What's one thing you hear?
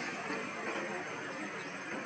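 A monkey gives a short, soft call close by.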